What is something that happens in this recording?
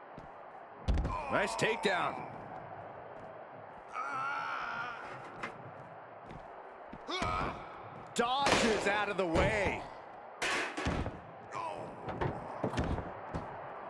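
Heavy bodies slam and thud onto a hard floor.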